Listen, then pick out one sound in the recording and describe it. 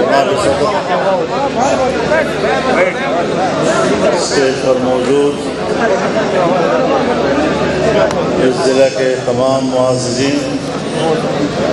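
An elderly man speaks forcefully into a microphone over loudspeakers, echoing outdoors.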